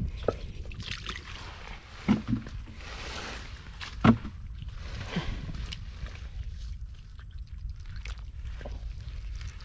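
Wet mud squelches as a hand digs into it.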